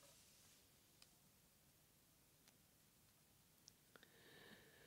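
Sheets of paper rustle softly.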